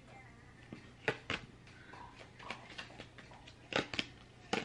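Cards shuffle and tap in a woman's hands.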